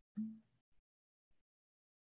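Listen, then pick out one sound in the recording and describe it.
A woman drinks from a glass.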